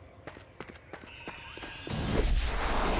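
Coins jingle with a bright chime as they are collected.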